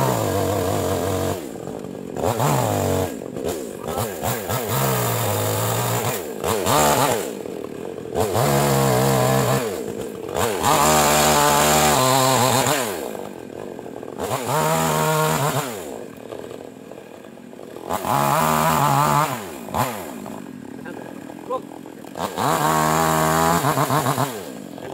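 A chainsaw revs in bursts and cuts through wood close by.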